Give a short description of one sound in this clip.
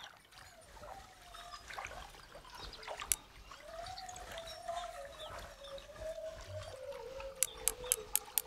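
A fishing reel whirs steadily as line is wound in.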